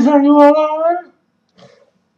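Teenage boys scream over an online call.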